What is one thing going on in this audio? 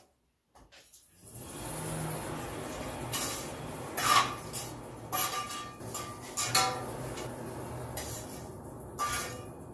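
A forge fire roars and crackles.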